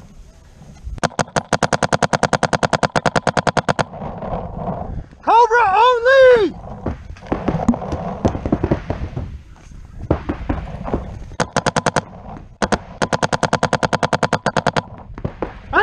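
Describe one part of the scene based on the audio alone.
A paintball marker fires rapid bursts of sharp pops.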